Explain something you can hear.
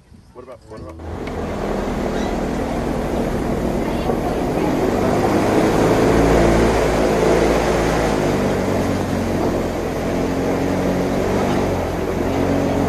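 Wind blows steadily across open water outdoors.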